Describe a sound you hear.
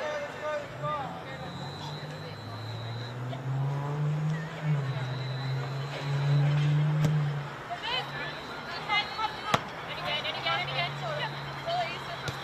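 Young women players shout to each other outdoors at a distance.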